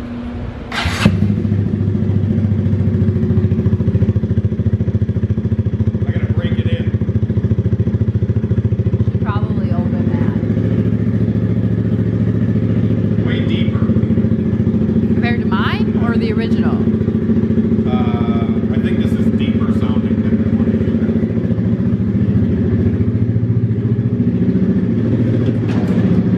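A motorcycle engine starts with a burst and idles with a steady, loud rumble.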